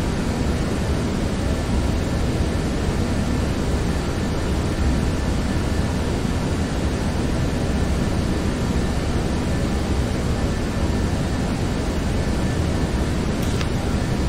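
Jet engines drone with a steady, low roar.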